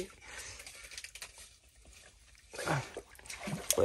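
Water sloshes softly as a hand stirs it.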